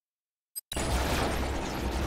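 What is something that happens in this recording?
Energy weapons fire in short zapping bursts.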